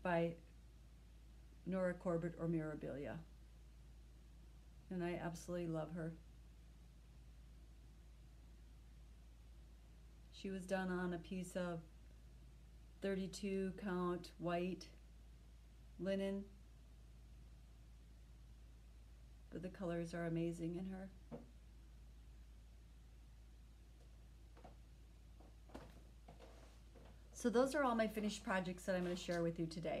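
A middle-aged woman speaks calmly and close by, in short phrases with pauses.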